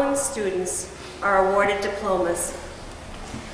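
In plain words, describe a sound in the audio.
A woman reads aloud into a microphone in a large echoing hall.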